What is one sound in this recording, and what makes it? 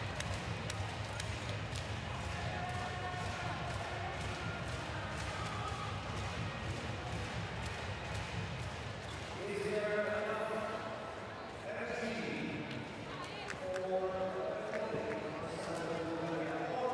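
A crowd cheers in a large echoing hall.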